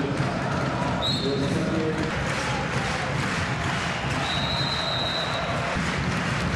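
A referee's whistle blows sharply, once briefly and once long.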